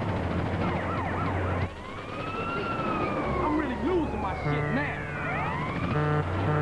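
A police siren wails and wavers.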